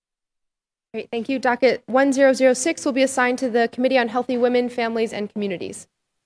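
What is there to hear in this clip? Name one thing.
A woman speaks into a microphone in a large room.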